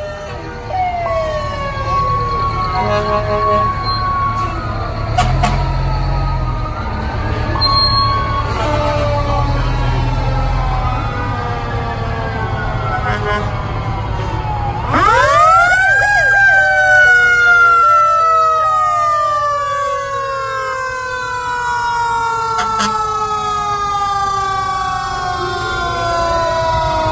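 Heavy truck engines rumble slowly past.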